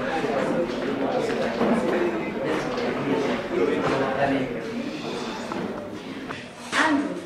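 Many young people chatter together in a room with some echo.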